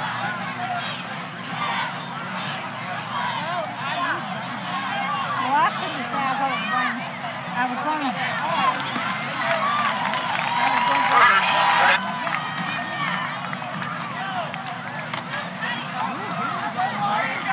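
A large crowd chatters and cheers outdoors.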